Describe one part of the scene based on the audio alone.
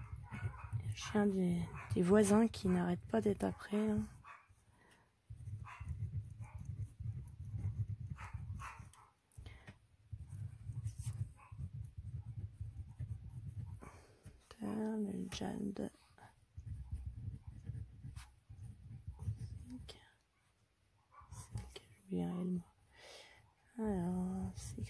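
A marker pen squeaks and scratches across paper.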